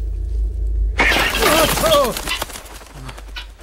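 A cloth curtain is swept aside with a rustle.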